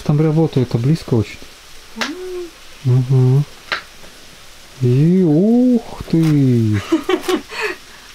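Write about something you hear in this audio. A knife chops on a cutting board.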